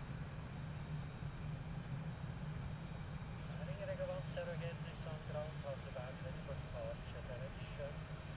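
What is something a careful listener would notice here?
Jet engines roar steadily at idle nearby.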